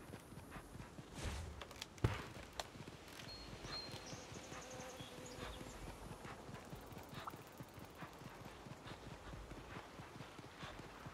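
A large animal's paws patter quickly over the ground.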